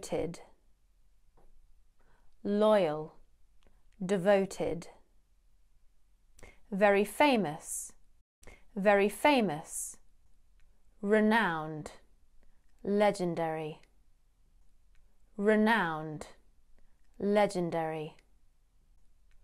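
A young woman speaks clearly and calmly into a close microphone, in short phrases with pauses.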